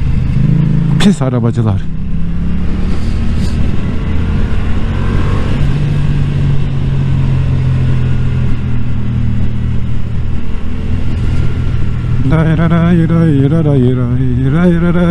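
A motorcycle engine revs up and down sharply.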